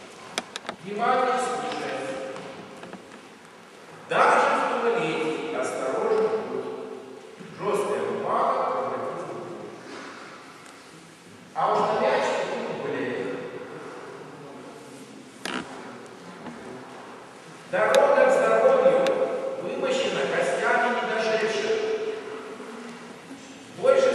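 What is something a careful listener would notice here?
A middle-aged man speaks loudly in bursts, echoing in a large hall.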